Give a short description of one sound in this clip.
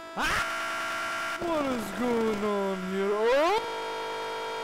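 Cartoon characters scream loudly in high, drawn-out voices.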